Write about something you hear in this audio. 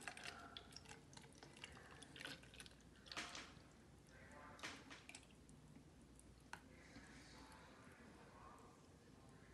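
Milk pours from a carton into a jar with a soft splashing gurgle.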